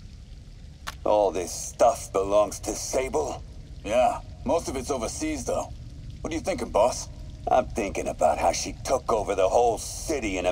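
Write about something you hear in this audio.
A man's voice plays back from a small voice recorder.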